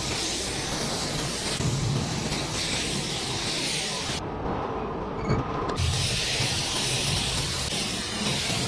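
A spray gun hisses steadily, pausing briefly before starting again.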